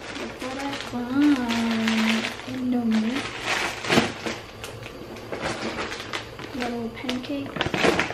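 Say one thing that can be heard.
A plastic snack bag crinkles in someone's hands.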